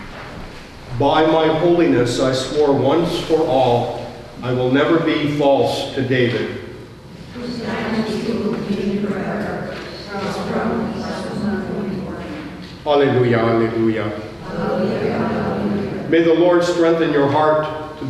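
An elderly man speaks steadily through a microphone in a large echoing room.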